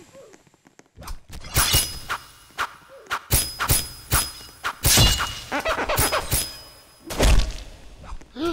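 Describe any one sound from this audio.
Bat blows land with sharp thuds again and again.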